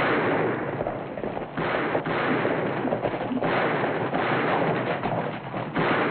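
Horses gallop past.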